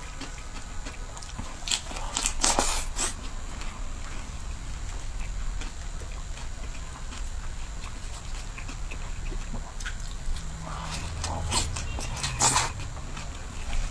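A young woman bites and crunches crisp lettuce close to a microphone.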